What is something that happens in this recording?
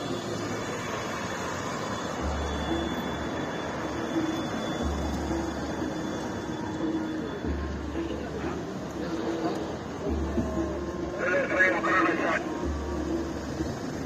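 Car engines hum as cars drive slowly past.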